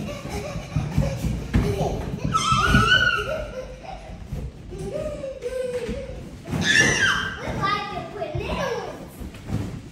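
Young children squeal and shout with excitement nearby.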